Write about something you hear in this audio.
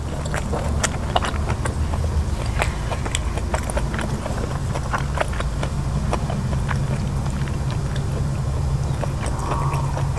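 A woman chews food noisily close to the microphone.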